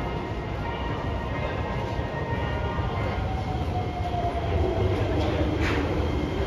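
A train rumbles into an echoing station, its motor whining steadily.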